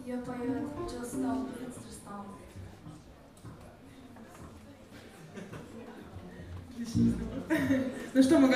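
A band plays.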